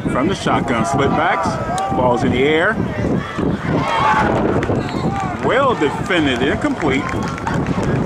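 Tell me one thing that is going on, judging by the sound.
A crowd cheers after a play.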